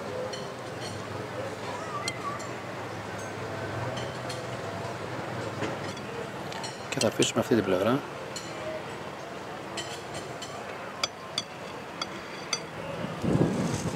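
A metal spoon clinks lightly against a dish.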